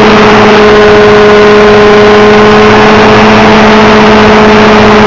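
A model helicopter's rotor blades whirr rapidly.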